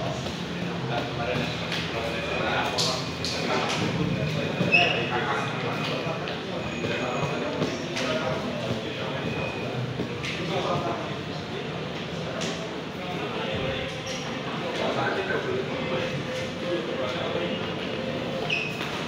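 Young men chatter in a lively crowd nearby.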